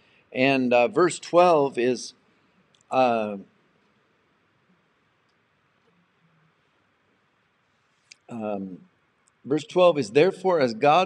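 A middle-aged man speaks calmly and closely into a microphone, with long pauses.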